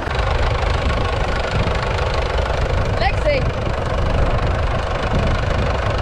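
A tractor engine idles nearby.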